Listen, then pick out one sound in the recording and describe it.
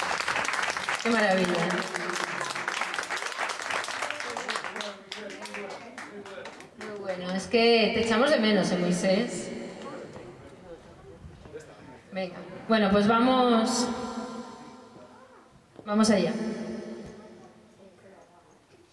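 A woman sings through a microphone over loudspeakers.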